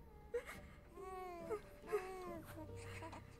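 A baby coos softly.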